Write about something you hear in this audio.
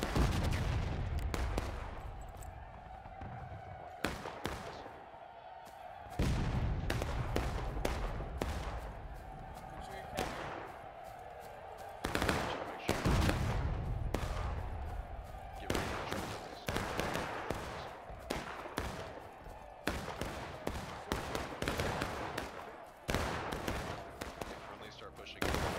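Rifle shots crack again and again across an open field, some near and some far off.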